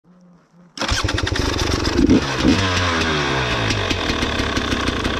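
An engine starts up close by and revs loudly.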